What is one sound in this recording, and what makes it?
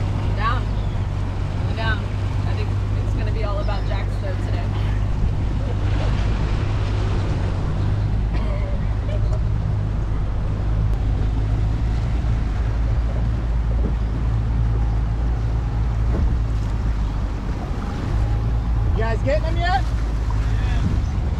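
A boat engine hums low and steady.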